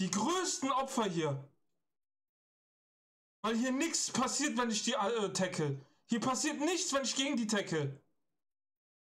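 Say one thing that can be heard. A man speaks close to a microphone in short, lively bursts.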